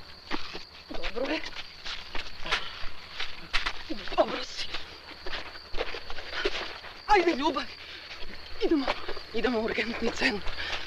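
A young man shouts in distress nearby.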